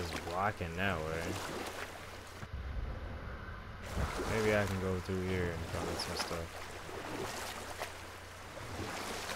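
Water splashes and churns around a moving rowing boat.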